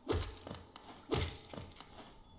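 A sharp slash and burst sound as an enemy is struck.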